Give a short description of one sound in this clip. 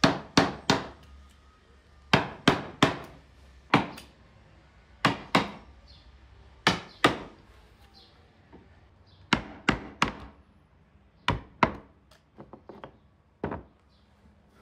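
A mallet taps sharply on a wooden chisel handle, again and again.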